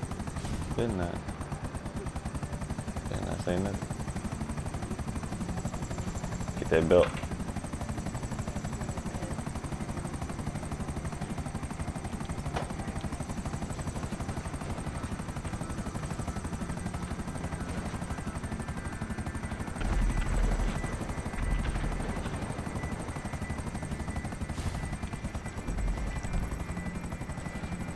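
A helicopter's rotor chops steadily overhead.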